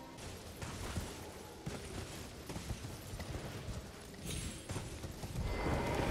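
A horse's hooves thud as it trots over rocky ground.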